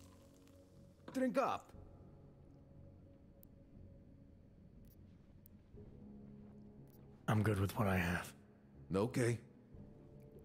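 A young man speaks casually.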